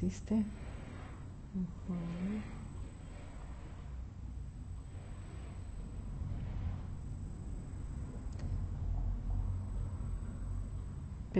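A woman snores close by, with slow, rasping breaths.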